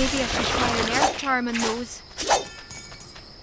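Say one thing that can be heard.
Coins jingle and chime as they scatter.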